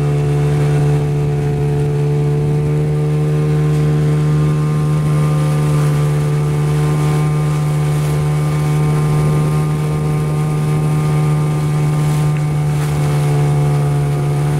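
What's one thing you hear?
An outboard motor drones steadily at a constant pitch.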